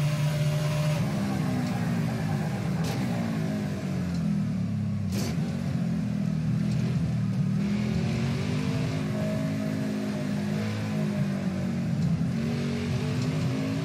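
A race car engine drops in pitch as the car slows, then revs up and down through gear changes.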